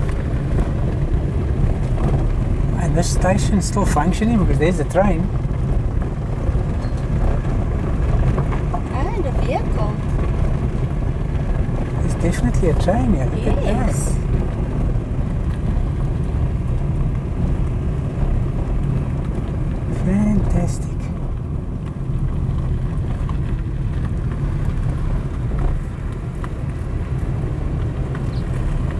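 Wind blows steadily, rumbling against the microphone outdoors.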